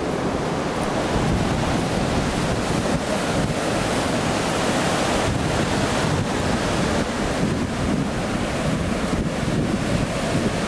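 Waves crash and wash onto a beach.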